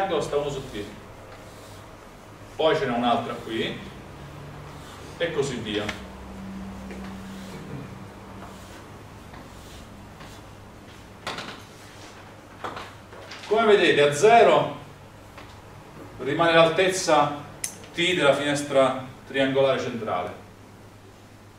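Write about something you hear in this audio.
A young man lectures calmly in an echoing room.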